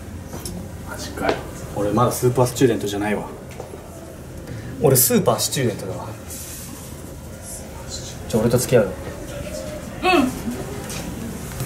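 A young man speaks nearby calmly.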